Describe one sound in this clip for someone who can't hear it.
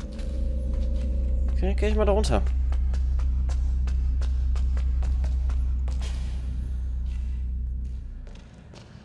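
Footsteps tap steadily on hard stairs.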